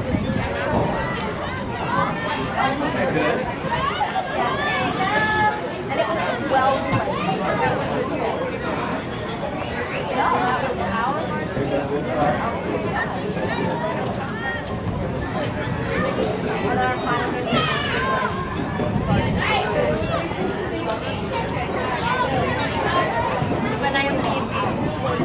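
Young women call out to each other from a distance outdoors.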